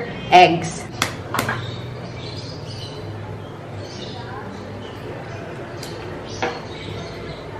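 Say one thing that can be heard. An eggshell taps and cracks against a metal spoon.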